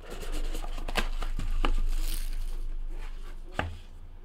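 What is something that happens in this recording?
Cardboard scrapes as a box slides open.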